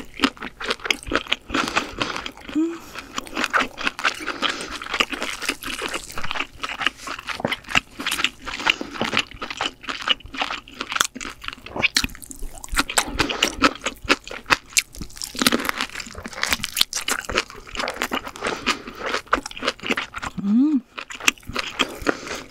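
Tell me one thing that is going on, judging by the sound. A young woman chews food loudly and wetly, close to a microphone.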